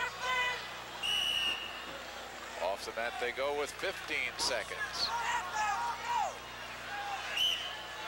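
A referee blows a sharp whistle in a large echoing hall.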